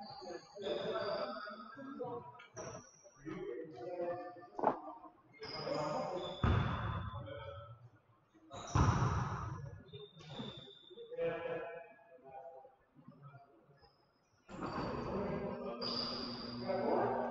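Sneakers squeak sharply on a hard gym floor.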